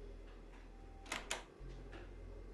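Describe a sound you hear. A door latch clicks as a door is opened.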